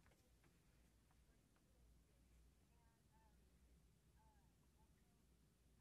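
A man speaks quietly in the distance.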